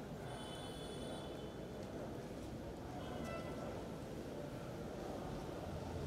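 Metal chains of a censer clink.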